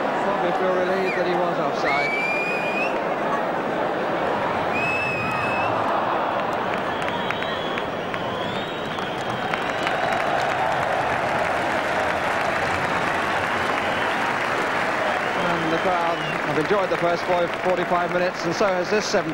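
A large stadium crowd roars and murmurs throughout.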